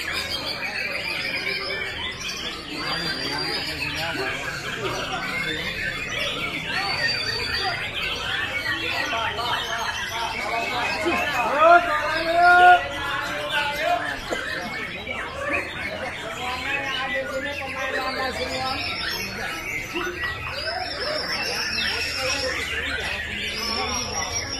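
Many caged birds chirp and sing busily all around.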